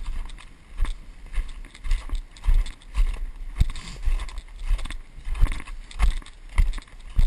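Footsteps crunch quickly through snow close by.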